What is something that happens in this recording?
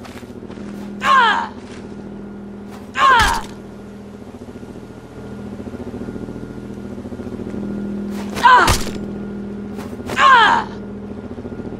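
A creature shrieks loudly several times.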